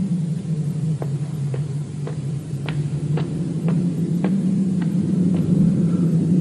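Footsteps tap slowly on stone.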